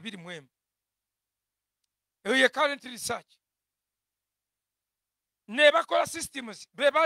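A young man preaches with animation into a microphone, in short bursts with pauses.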